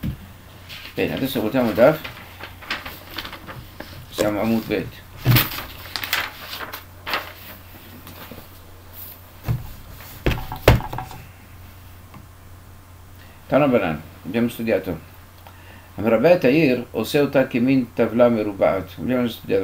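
An elderly man speaks calmly and slowly, close by, heard through a computer microphone.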